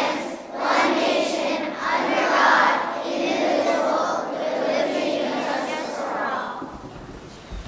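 A group of young children sings together in a large echoing hall.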